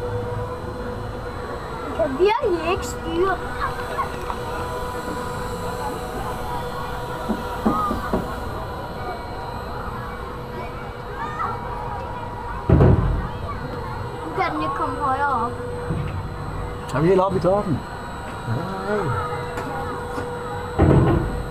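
A ride's motor hums steadily throughout.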